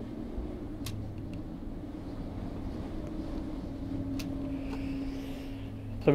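Small metal parts click and tap on a table.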